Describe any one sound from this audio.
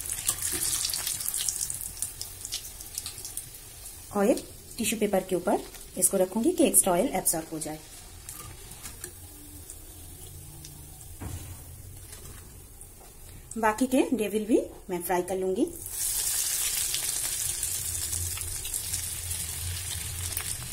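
Hot oil sizzles and crackles loudly in a frying pan.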